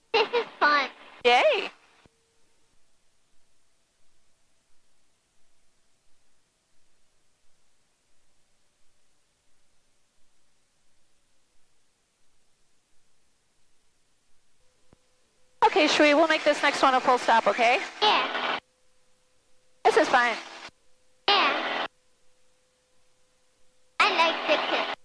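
A middle-aged woman speaks calmly through a headset intercom, in short bursts.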